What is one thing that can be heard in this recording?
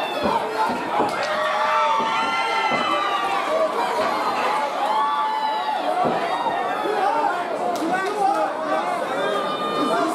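A large crowd shouts and cheers loudly throughout.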